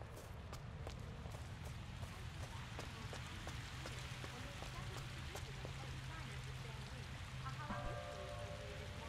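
A fountain splashes and trickles nearby.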